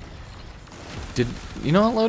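Rapid gunfire crackles in bursts.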